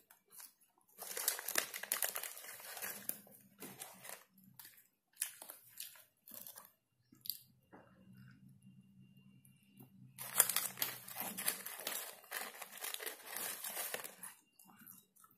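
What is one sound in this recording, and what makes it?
A paper bag crinkles and rustles loudly as hands handle it.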